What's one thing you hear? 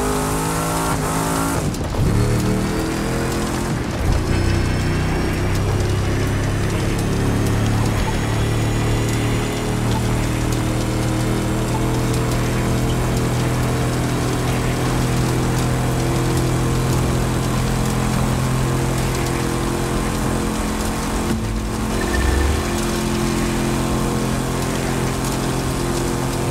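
Tyres scrub and skid on a dry surface.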